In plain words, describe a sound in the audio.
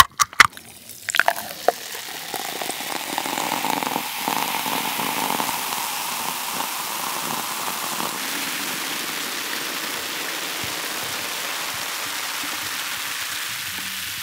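Fizzy soda pours into a glass and crackles with bubbles.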